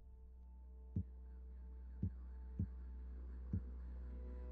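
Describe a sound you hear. Soft interface clicks sound a few times.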